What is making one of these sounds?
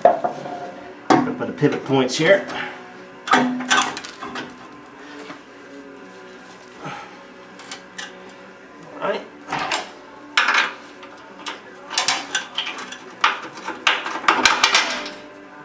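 Metal parts clank and knock as they are fitted.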